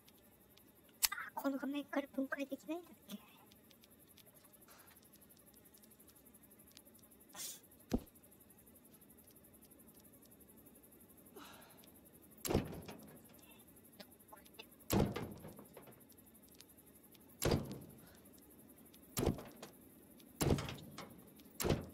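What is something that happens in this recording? Short interface clicks and chimes sound as menu items are picked.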